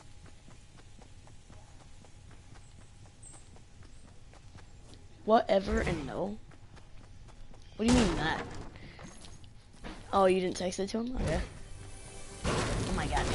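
Quick footsteps patter on grass and dirt.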